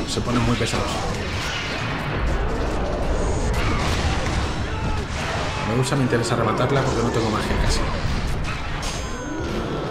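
Blades slash and strike flesh with sharp impacts.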